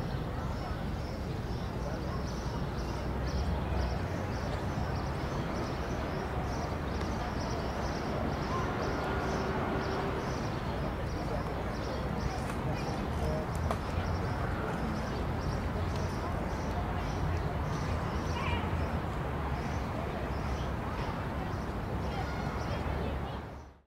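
Young hawks cheep softly in a nest.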